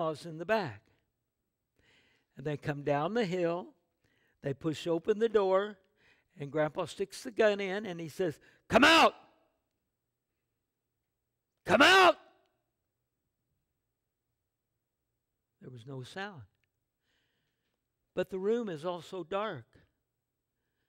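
An elderly man speaks with animation through a microphone, pausing often.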